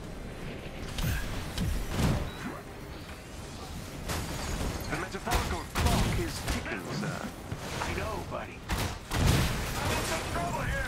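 Blasts and shots bang loudly.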